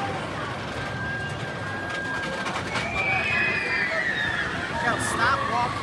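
A roller coaster train rumbles and roars along its track.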